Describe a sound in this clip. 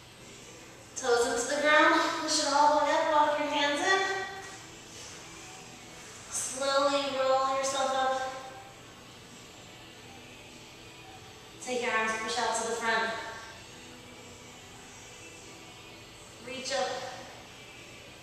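A woman speaks calmly in short bursts, giving instructions close to the microphone.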